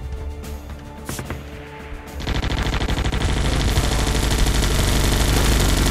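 Gunfire and explosions rattle and boom in a video game battle.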